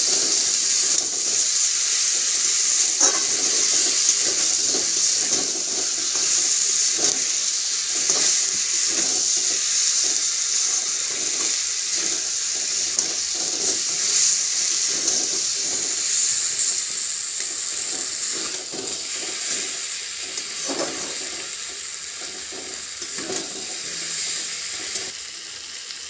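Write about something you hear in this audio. Chicken sizzles and fries in a hot pan.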